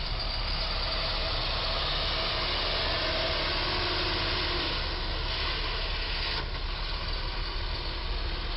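A heavy truck's engine rumbles as it pulls slowly through a turn.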